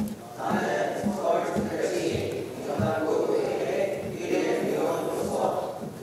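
A group of young people recite an oath together in unison.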